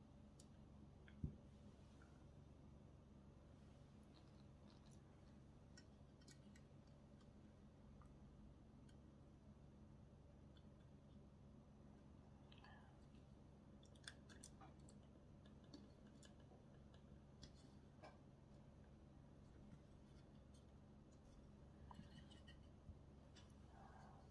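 Small plastic and metal parts click softly as they are fitted together.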